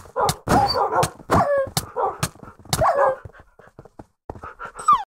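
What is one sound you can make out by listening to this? Blows land on creatures in a video game with short thuds.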